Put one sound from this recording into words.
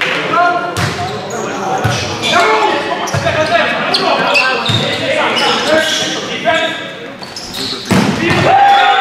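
A volleyball is struck with sharp slaps in an echoing hall.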